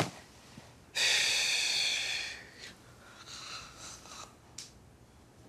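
A man yawns loudly with a long groan.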